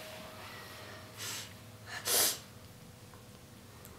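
A young boy speaks softly, close by.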